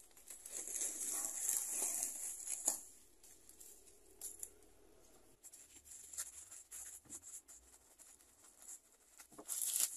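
Scissors snip through plastic.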